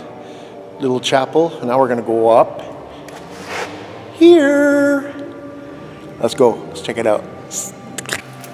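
A middle-aged man talks with animation close by, his voice echoing in a large hall.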